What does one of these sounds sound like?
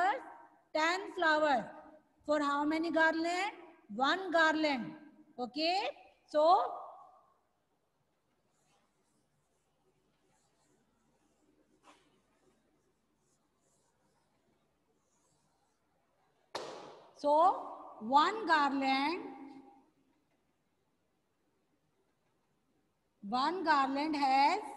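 A woman speaks clearly and with animation into a headset microphone, in short bursts with pauses.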